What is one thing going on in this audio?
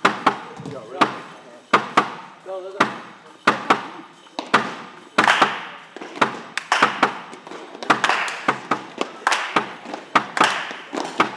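Small balls bounce with sharp, quick clicks on a hard floor.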